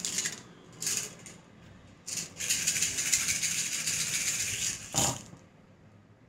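Small shells rattle in cupped hands.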